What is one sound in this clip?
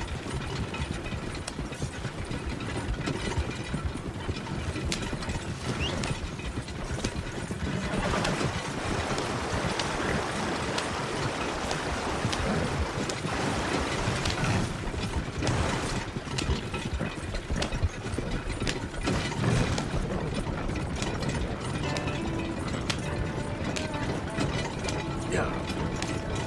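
A wagon rumbles and creaks along a dirt track.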